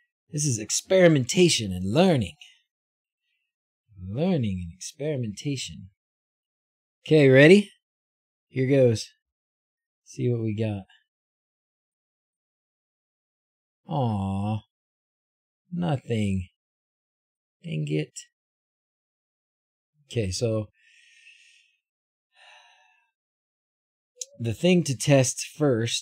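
A middle-aged man talks calmly into a close microphone, in short bursts with pauses.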